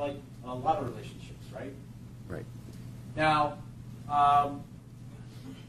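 A man speaks calmly in short phrases, heard through a microphone.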